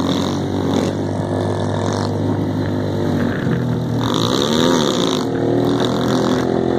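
Motorcycle engines drone close by and rev up and down.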